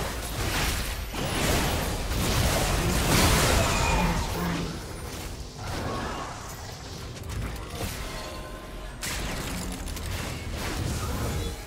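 Magic blasts whoosh and crash in a hectic battle.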